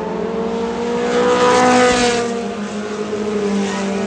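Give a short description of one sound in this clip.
A race car engine roars loudly as one car passes close by.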